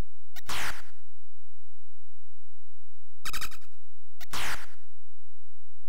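A low electronic buzz drones steadily.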